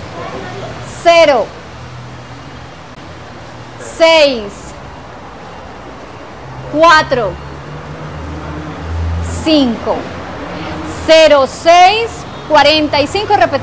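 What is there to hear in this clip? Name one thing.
A woman announces in short, clear bursts through a microphone.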